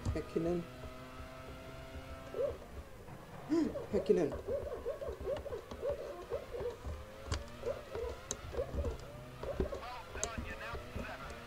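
A racing car engine whines at high revs and shifts gears.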